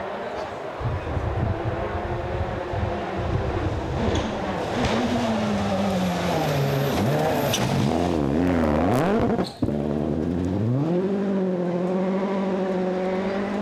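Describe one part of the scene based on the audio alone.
A rally car engine roars and revs hard as the car approaches and speeds past.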